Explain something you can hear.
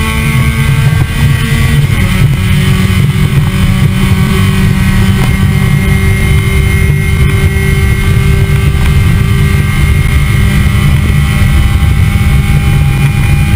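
A car engine roars loudly up close at high revs, shifting pitch as gears change.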